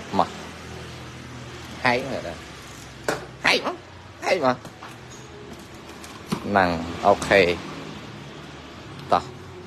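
A young man speaks nearby in short phrases.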